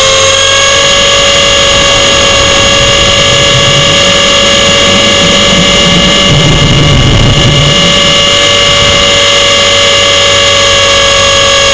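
Drone propellers whine loudly and steadily close by.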